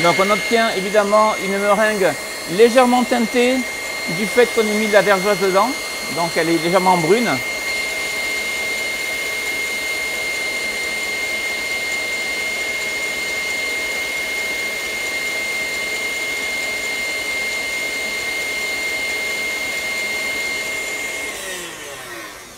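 A stand mixer whirs steadily.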